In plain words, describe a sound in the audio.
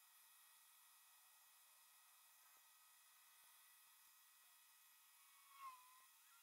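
A cotton swab scrubs softly against a circuit board.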